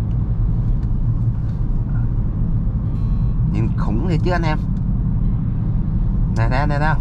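A car engine hums and tyres rumble steadily on the road.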